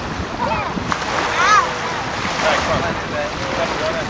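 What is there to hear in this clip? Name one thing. A young child squeals and laughs excitedly.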